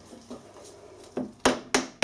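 A mallet taps on metal.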